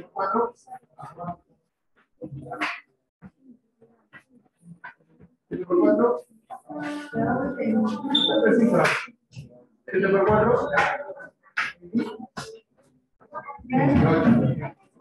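A woman speaks calmly over an online call, explaining in short bursts.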